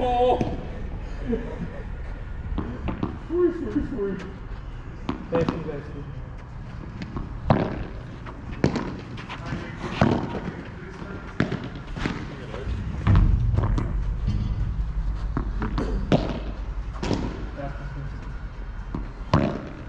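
Men call out briefly to each other across an outdoor court.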